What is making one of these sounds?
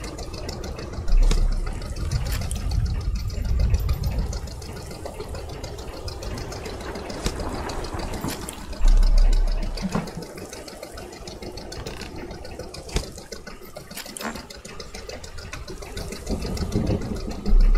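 Water laps against the side of a boat.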